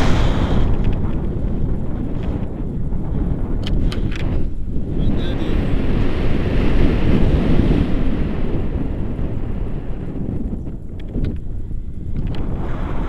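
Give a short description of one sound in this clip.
Wind roars and buffets steadily outdoors.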